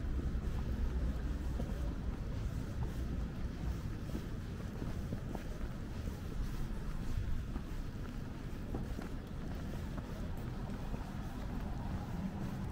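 A low, steady rumble of distant city traffic fills the air outdoors.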